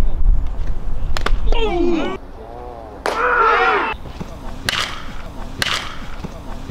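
A bat cracks sharply against a baseball outdoors.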